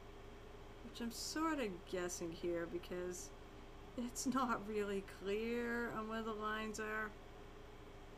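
A woman speaks casually into a close microphone.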